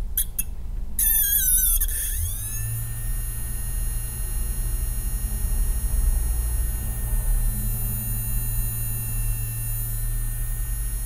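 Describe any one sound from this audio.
A hard drive motor spins up with a rising whine, then hums steadily.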